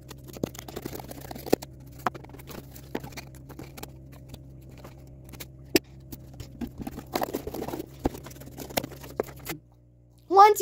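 Sheets of cardboard scrape, flap and rustle as they are handled.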